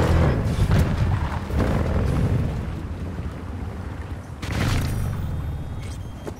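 Tyres crunch over rough, rocky ground.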